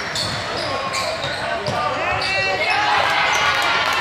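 Sneakers squeak sharply on a wooden court.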